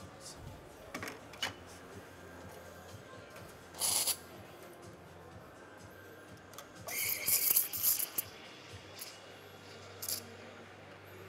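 Metal parts of an espresso machine click and clank.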